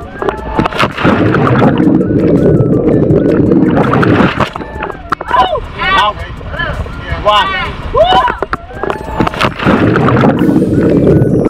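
Water bubbles and churns underwater.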